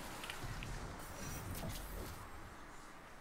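An energy blast crackles and whooshes.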